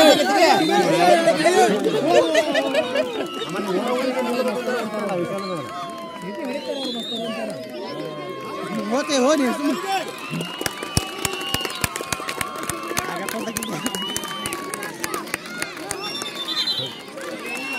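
A crowd of children shouts and cheers outdoors.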